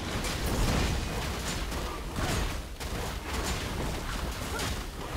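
Game combat effects clash and crackle in bursts.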